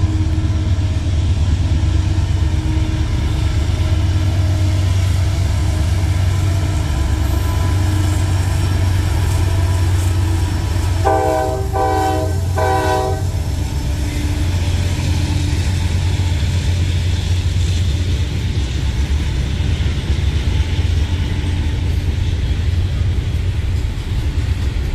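A diesel locomotive rumbles steadily as a freight train rolls past.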